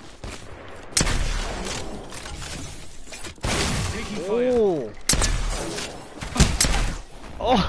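Gunshots ring out sharply, one after another.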